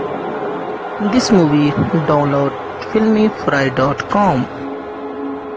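A man cries out loudly in anguish.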